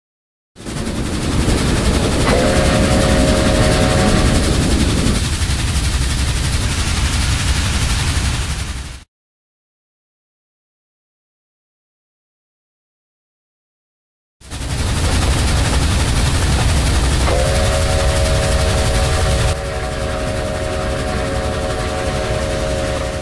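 A train rumbles heavily along the rails.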